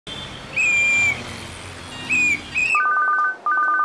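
Vehicle horns honk.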